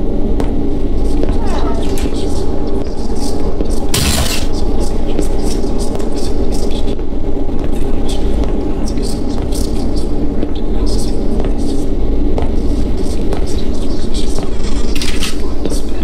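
Footsteps walk slowly along a wooden floor.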